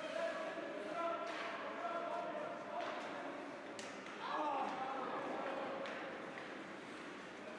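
Spectators talk and call out nearby in a large echoing rink.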